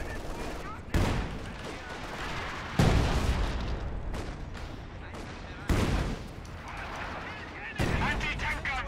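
Explosions boom and rumble in a battle.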